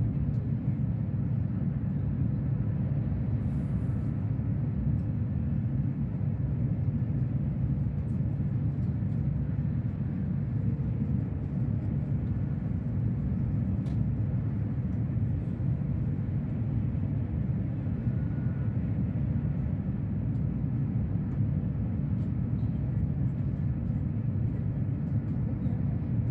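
A fast train rumbles steadily, heard from inside a carriage.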